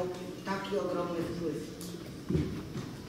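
A man speaks calmly through a microphone in an echoing hall.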